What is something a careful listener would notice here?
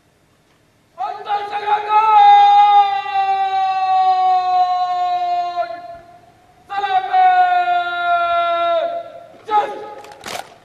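A man calls out long, drawn-out parade commands loudly outdoors.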